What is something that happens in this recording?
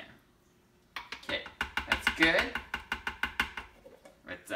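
A spoon taps repeatedly against a plastic bowl.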